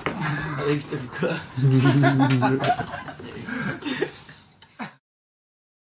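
A man and a young woman laugh together close by.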